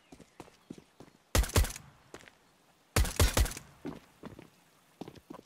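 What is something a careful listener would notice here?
Footsteps tread quickly on a hard floor.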